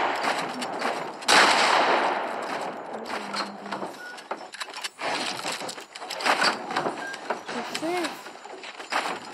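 Wooden walls are built in quick succession with sharp clattering knocks.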